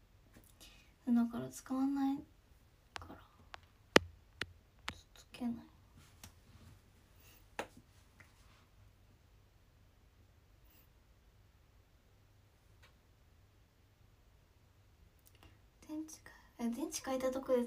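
A young woman speaks softly and close by, with pauses.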